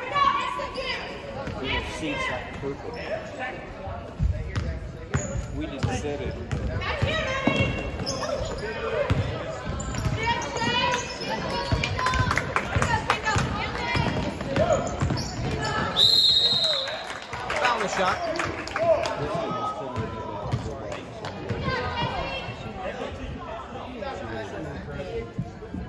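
Spectators shout and cheer in a large echoing hall.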